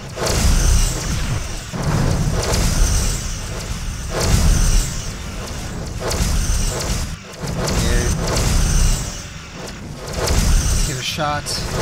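Energy weapons fire in sustained buzzing beams.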